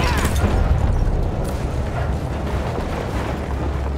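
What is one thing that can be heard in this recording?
A loud explosion booms and rumbles nearby.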